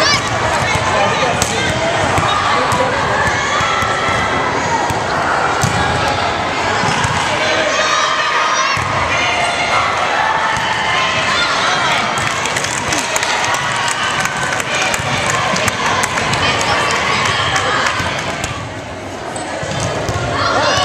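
Young girls call out to each other in a large echoing gym.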